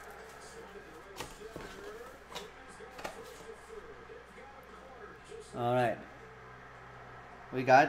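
A plastic card case clicks and rattles in hands.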